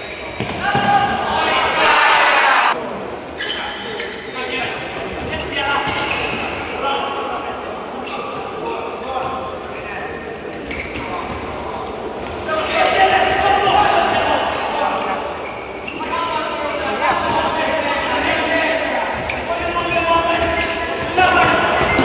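A futsal ball is kicked on an indoor court.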